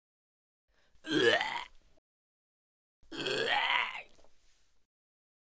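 A young man coughs heavily.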